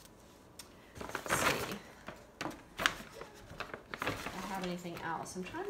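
A paper gift bag rustles and crinkles as it is handled.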